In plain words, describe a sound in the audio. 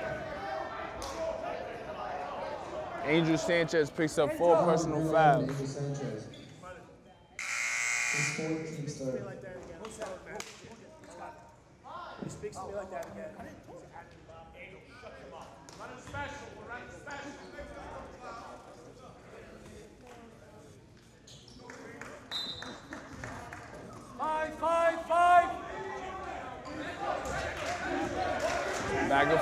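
Spectators murmur and call out in a large echoing gym.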